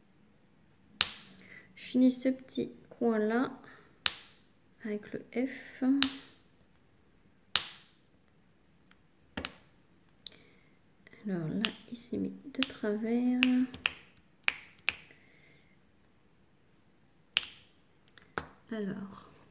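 A pen taps and clicks against a small plastic tray.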